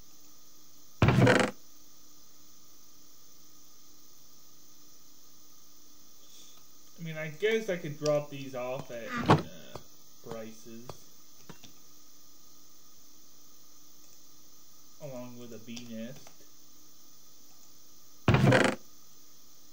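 A wooden chest creaks open.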